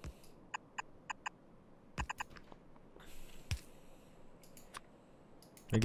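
Short electronic game clicks sound now and then.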